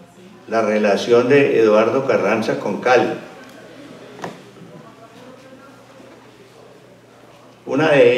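A middle-aged man speaks calmly into a microphone, heard through a loudspeaker.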